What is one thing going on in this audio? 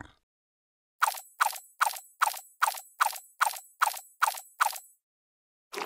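Short game sound effects play one after another in a mobile game.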